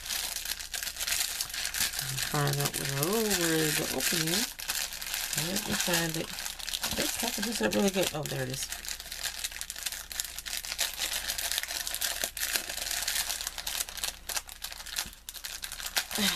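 Plastic wrap crinkles and rustles close by.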